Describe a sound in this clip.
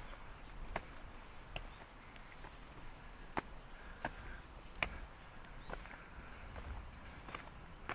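Footsteps tap on stone steps at a steady pace.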